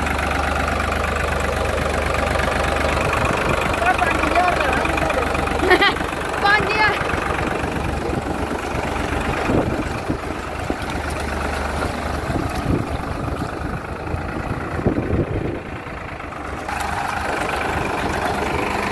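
Tractor tyres squelch and splash through thick mud.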